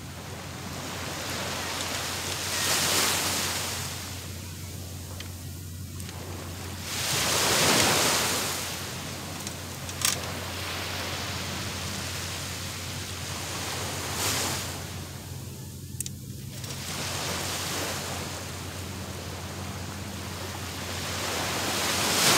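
Small waves wash onto the shore in slow surges.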